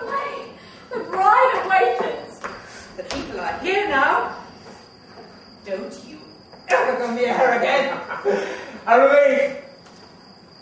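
A woman speaks with animation from a distance.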